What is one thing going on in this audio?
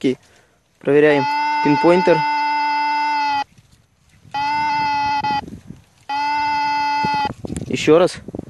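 A metal detector gives out long steady tones.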